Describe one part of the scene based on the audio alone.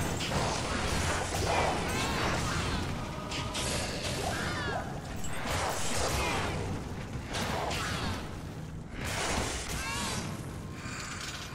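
Fiery spell blasts crackle and roar in a game.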